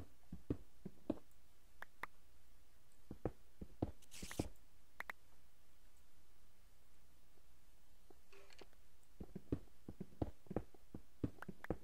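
A pickaxe chips and breaks stone blocks.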